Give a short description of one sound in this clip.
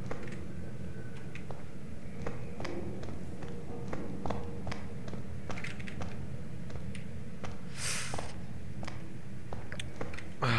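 Footsteps tap steadily on a hard tiled floor.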